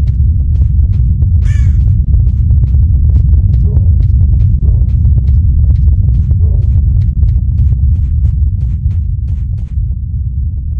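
Footsteps crunch quickly through grass.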